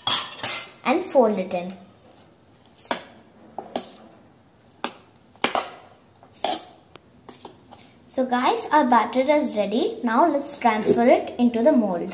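A spoon scrapes and clinks against a metal pot.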